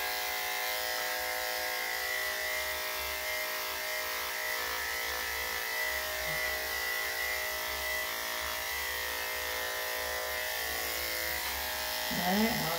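Electric clippers buzz steadily as they trim a dog's fur.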